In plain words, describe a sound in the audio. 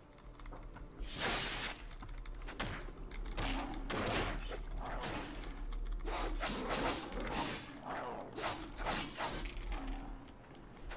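Magic spells whoosh and burst in bursts.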